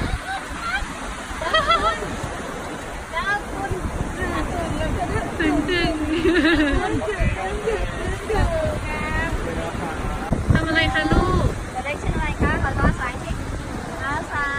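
Adults speak with animation close by.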